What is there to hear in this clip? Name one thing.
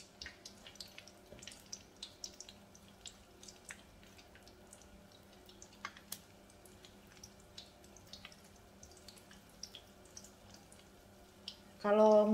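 Oil sizzles and pops as dough balls fry in a pan.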